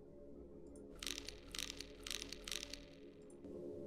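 Keyboard keys click and clatter.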